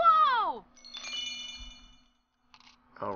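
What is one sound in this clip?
A bright electronic chime rings and fades.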